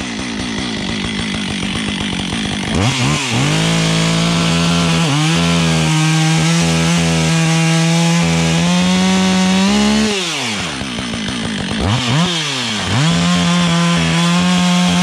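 A chainsaw idles, then revs up loudly and cuts through wood, its pitch rising and falling.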